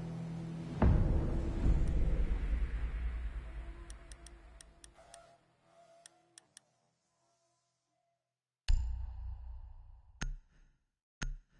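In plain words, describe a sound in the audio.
A deep whoosh sweeps in and slowly fades.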